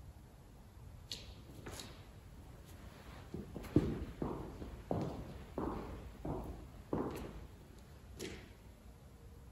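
Footsteps tap softly on a hard floor, moving away.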